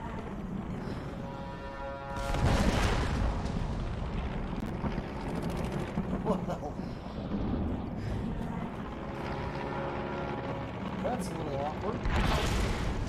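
Propeller plane engines roar loudly.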